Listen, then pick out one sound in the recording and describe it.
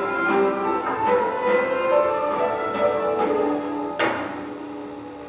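An orchestra plays loudly in a large hall and ends on a final chord.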